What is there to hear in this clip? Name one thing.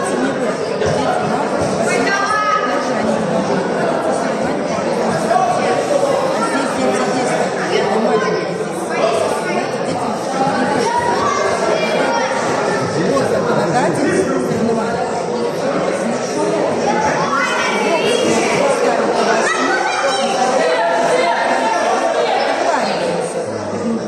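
A crowd of spectators chatters and shouts, echoing in a large hall.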